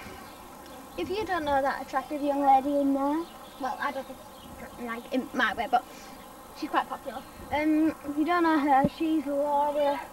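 A young girl talks and sings close by.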